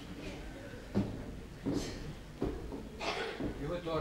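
Footsteps thud on a wooden stage.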